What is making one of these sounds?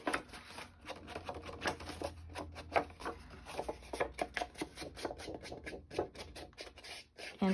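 An ink pad dabs and rubs against paper in quick, soft taps.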